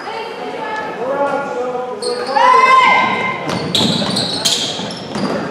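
A crowd of spectators murmurs and calls out.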